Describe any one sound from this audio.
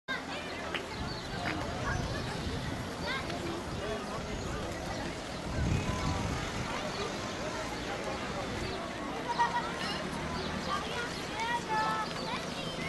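A crowd of adults and children chatter outdoors.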